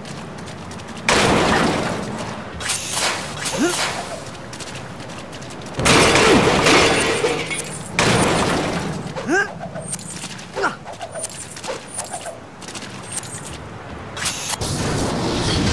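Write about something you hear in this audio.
Game sound effects of punches and blasts crackle and thud.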